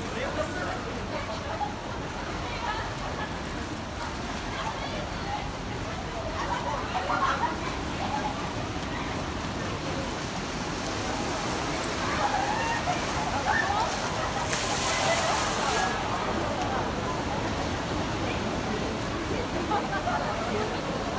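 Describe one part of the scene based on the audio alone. Water splashes and churns as a large animal swims fast through a pool.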